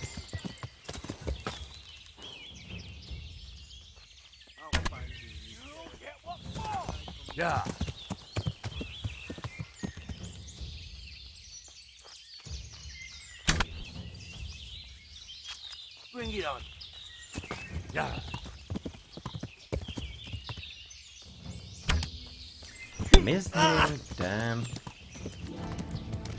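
A horse's hooves thud along a path.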